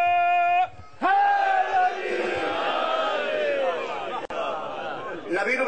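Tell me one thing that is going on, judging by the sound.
A large crowd shouts and cries out together.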